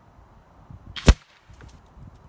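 A single gunshot cracks sharply nearby.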